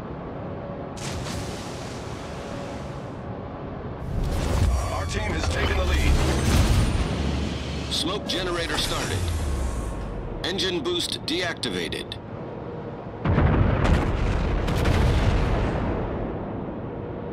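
Heavy naval guns boom and rumble.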